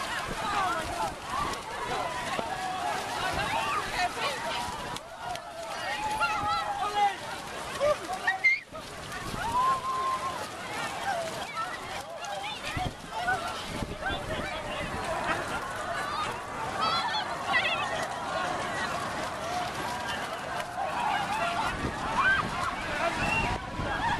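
A large crowd of men, women and children shouts and cheers outdoors.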